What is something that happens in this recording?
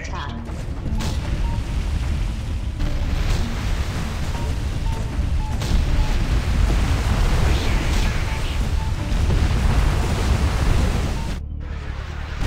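Explosions boom again and again.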